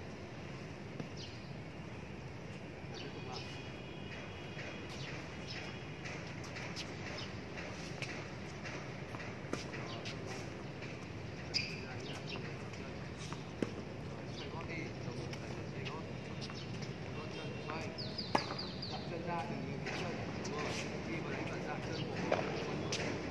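Tennis balls are struck by rackets and bounce on a hard court with sharp pops.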